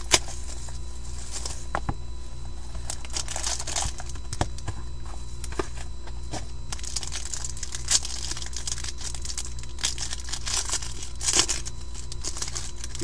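Foil card wrappers crinkle and tear under handling.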